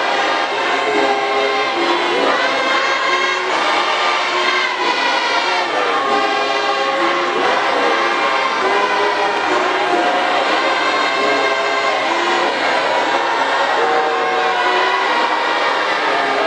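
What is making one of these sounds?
A large crowd of men sings together.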